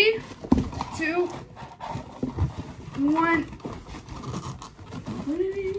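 A cardboard box rustles and thumps as a boy handles it.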